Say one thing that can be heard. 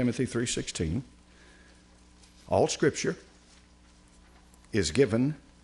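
An elderly man speaks slowly and calmly through a microphone, in short phrases with pauses.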